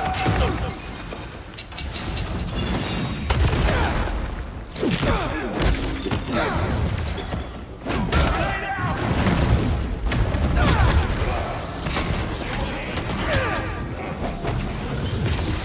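Heavy blows land with loud thuds.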